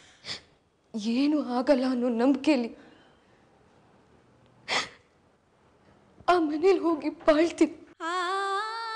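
A woman speaks tearfully.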